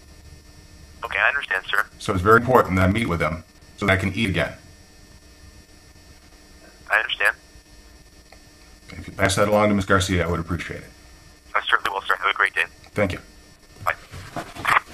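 A man speaks calmly and close to the microphone, with pauses.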